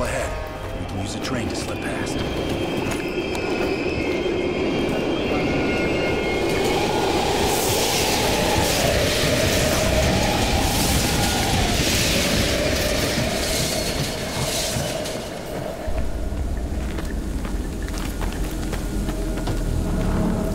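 Footsteps crunch on gravel between rails.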